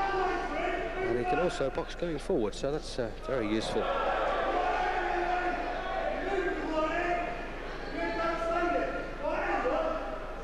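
A crowd of men shouts and cheers loudly.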